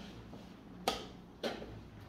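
A chess piece is set down on a wooden board with a knock.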